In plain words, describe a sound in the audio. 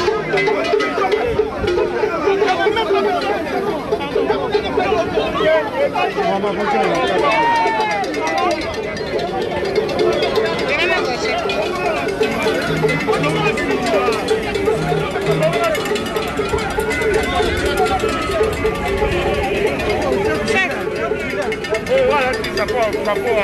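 A large crowd of men and women talks and calls out loudly all around, close by.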